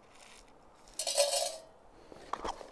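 Dried food rattles as it is poured into a metal pot.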